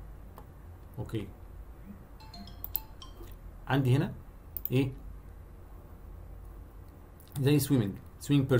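A man speaks calmly through an online call, in short bursts.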